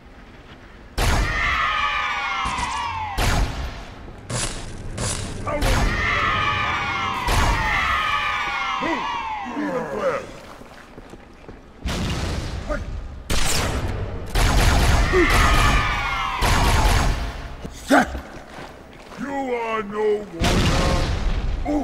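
Energy weapons fire in loud, rapid bursts.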